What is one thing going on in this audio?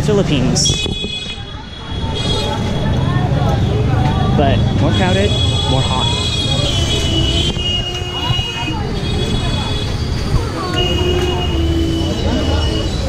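Busy street traffic hums and rumbles steadily outdoors.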